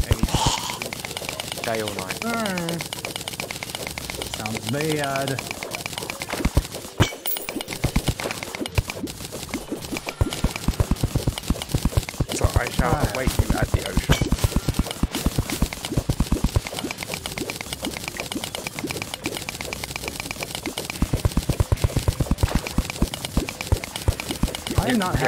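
Quick, repeated digging clicks from a video game come steadily.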